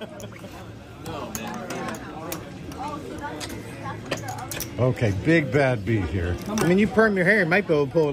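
Casino chips click and clatter as they are stacked and slid across a table.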